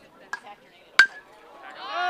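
A metal bat cracks sharply against a ball.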